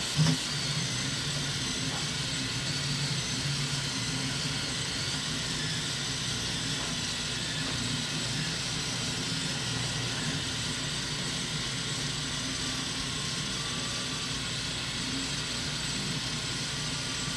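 A cooling fan hums steadily.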